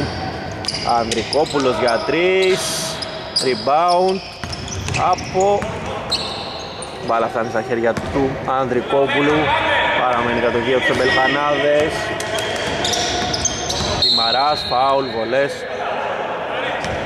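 Men shout and call out to each other across a large echoing hall.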